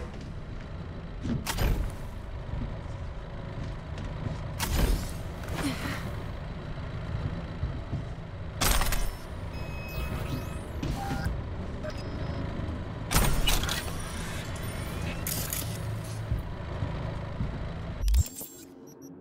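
A low, rumbling hum drones steadily, then cuts off.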